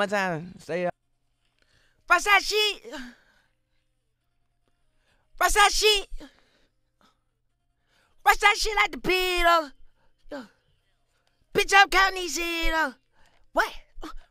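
A young man sings in short bursts with silent pauses between.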